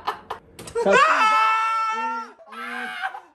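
A young man shrieks in a long high-pitched wail.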